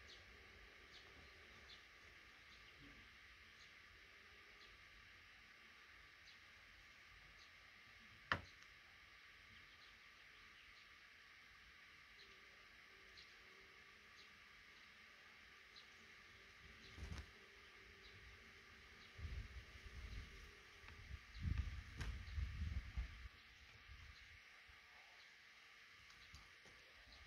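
Baby birds cheep softly in a nest, up close.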